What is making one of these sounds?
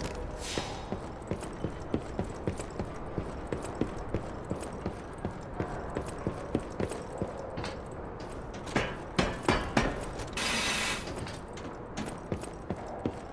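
Footsteps thud steadily on creaking wooden boards.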